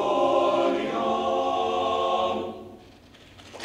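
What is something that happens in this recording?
A male choir sings in harmony in a large hall and holds a final chord.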